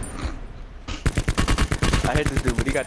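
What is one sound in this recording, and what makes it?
A rapid burst of gunfire rattles loudly.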